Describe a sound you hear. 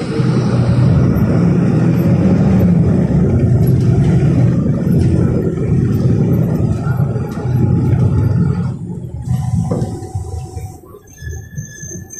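A vehicle's engine rumbles low and steady from inside the vehicle, then quietens.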